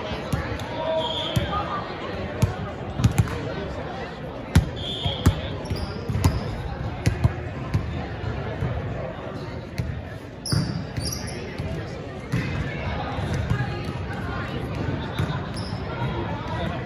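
Sneakers squeak on the gym floor.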